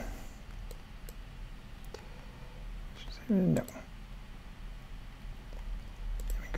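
A computer mouse clicks a few times.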